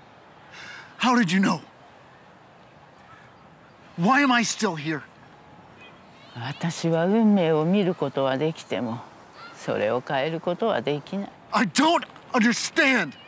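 A young man speaks close by in a strained, emotional voice.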